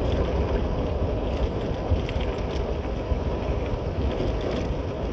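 A motorcycle engine rumbles steadily.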